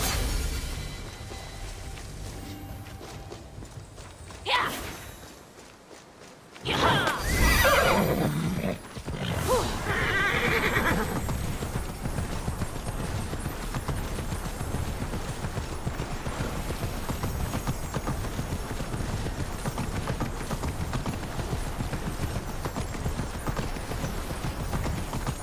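Quick footsteps patter on stone as a character runs.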